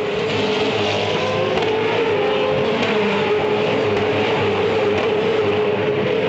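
A racing car whooshes past up close.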